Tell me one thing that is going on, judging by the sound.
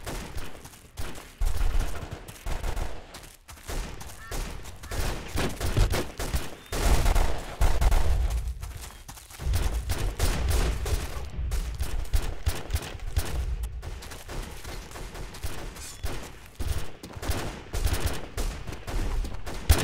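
Footsteps thud steadily over soft ground.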